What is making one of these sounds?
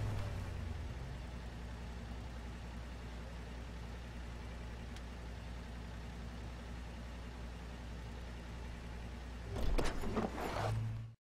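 A pickup truck's engine hums steadily at low speed.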